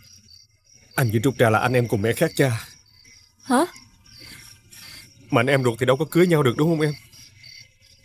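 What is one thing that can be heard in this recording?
A young man speaks calmly and closely.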